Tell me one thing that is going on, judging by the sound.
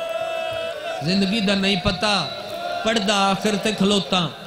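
A man recites loudly and with passion through a microphone and loudspeakers.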